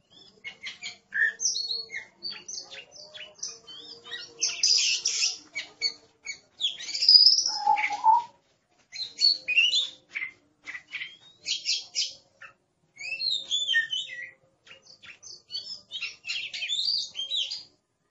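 A songbird sings close by in a rich, varied string of whistles, trills and chirps.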